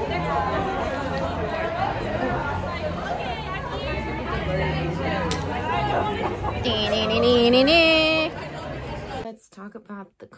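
A crowd chatters outdoors on a busy street.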